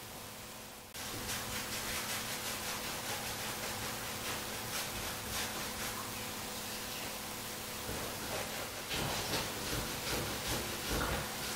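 Liquid streams from a nozzle and splashes.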